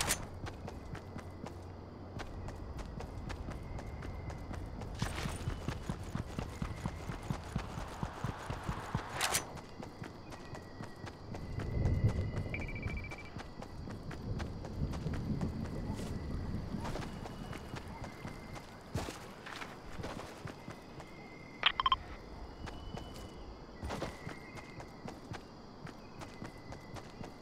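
A game character's footsteps patter quickly through grass.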